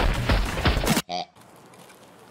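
A rubber pig toy squeaks when pressed.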